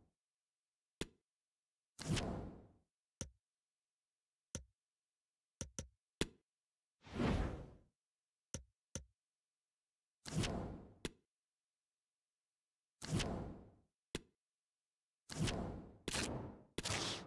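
Short electronic clicks sound as menu items are selected.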